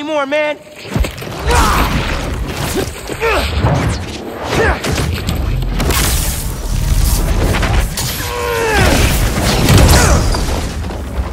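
Heavy blows thud during a fight.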